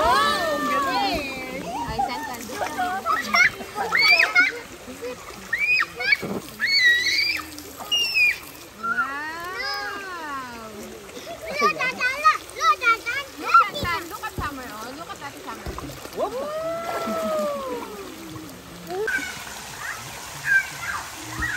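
A young girl talks and squeals in a high, lively voice close by.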